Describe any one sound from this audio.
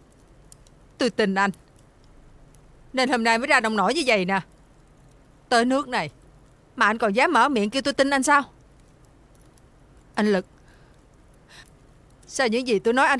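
A woman speaks nearby in an upset, pleading voice.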